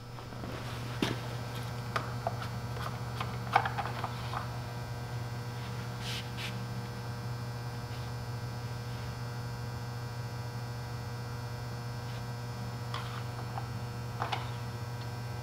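A dipstick clicks and scrapes against a mower engine.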